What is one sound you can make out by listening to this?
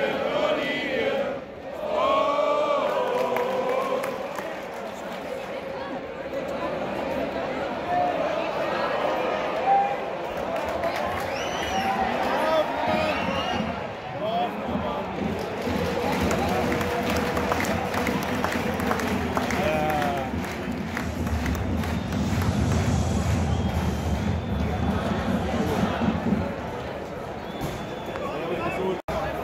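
A large stadium crowd chants and sings steadily outdoors.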